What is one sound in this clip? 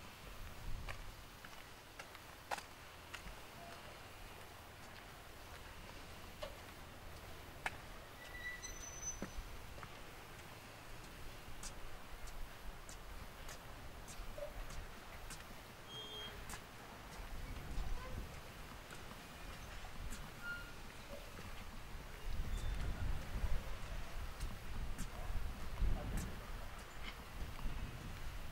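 Wind blows outdoors in gusts, rumbling against the microphone.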